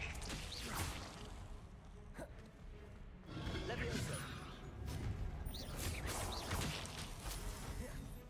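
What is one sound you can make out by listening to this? Magic spells crackle and whoosh in short bursts.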